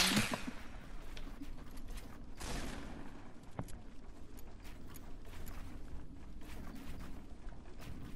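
Wooden walls and ramps snap into place with hollow knocks.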